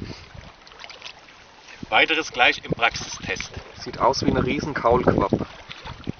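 A fish thrashes and splashes in shallow water.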